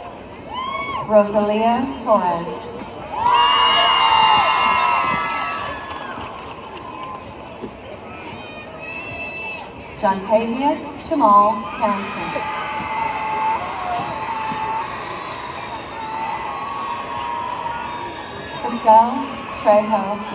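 A man reads out over a loudspeaker outdoors.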